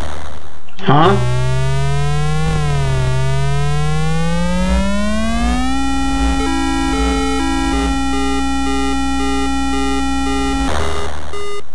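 An electronic engine drone hums and rises in pitch.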